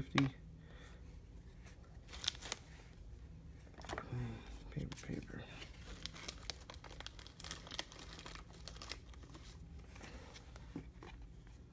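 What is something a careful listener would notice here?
Trading cards slide and flick against each other in a stack.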